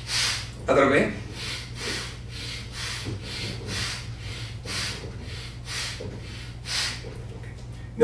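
A man breathes in and out slowly and deeply.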